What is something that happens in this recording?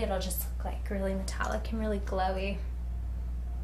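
A young woman speaks calmly, close up.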